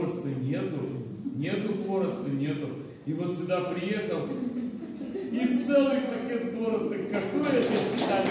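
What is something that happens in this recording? An elderly woman sings into a microphone.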